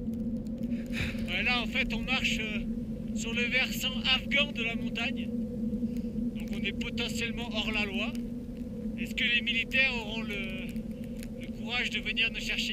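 A young man speaks close to the microphone, outdoors in wind.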